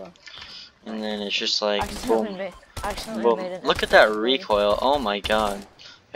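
A gun fires in quick bursts of shots.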